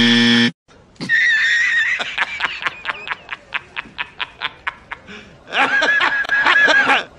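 A man laughs loudly and heartily in rapid bursts.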